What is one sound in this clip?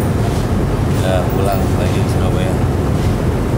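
A man speaks close by.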